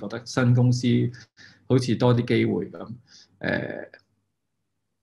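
A man speaks calmly and close up, heard through a microphone.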